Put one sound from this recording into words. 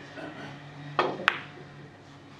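Billiard balls click sharply together.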